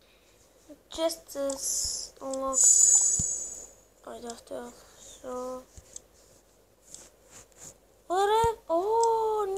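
A young boy talks in short bursts close to the microphone.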